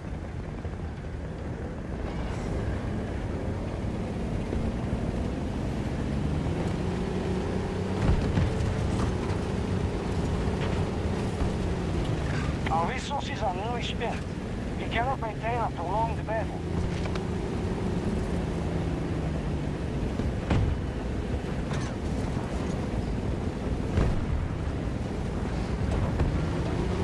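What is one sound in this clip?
Tank tracks clatter and grind over rocky ground.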